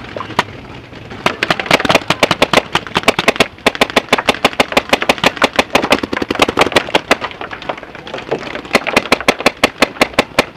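A paintball marker fires in rapid bursts close by.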